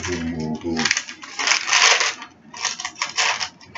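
Packaging rustles and crinkles in a man's hands.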